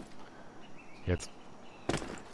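A body lands on the ground with a thud.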